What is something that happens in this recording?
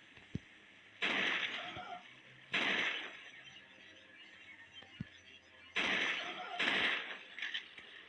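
A pistol fires single loud shots.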